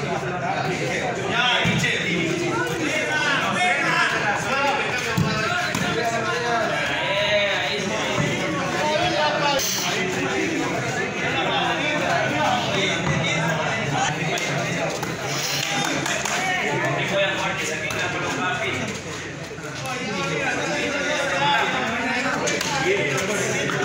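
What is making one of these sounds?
A ball is struck with hands, thumping sharply.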